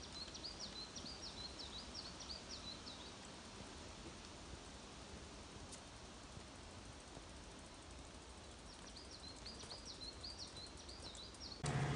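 Bicycle tyres roll softly over a dirt path.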